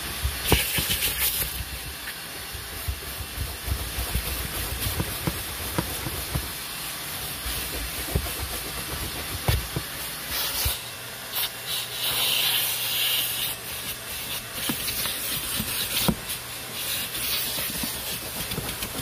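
A vacuum cleaner hums steadily.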